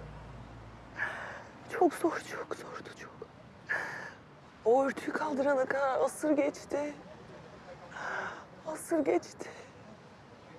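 A young woman sobs and speaks through tears close by.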